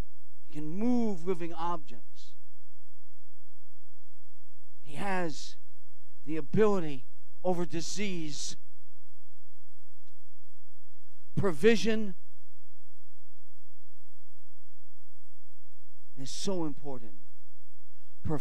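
An elderly man speaks into a microphone in short bursts, with long pauses.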